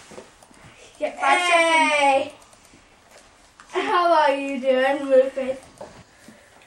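A girl talks loudly and excitedly nearby.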